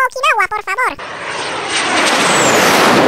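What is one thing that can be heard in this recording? An airplane engine roars and grows louder.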